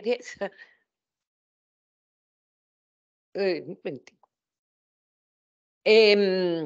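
An elderly woman speaks calmly over an online call, in short bursts.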